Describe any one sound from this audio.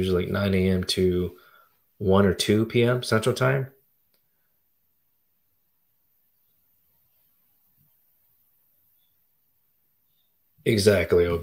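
A man speaks calmly into a microphone, close up, with long pauses.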